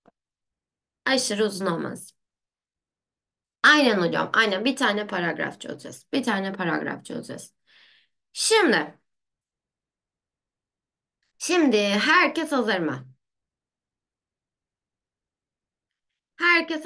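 A young woman talks calmly into a close microphone, in short bursts.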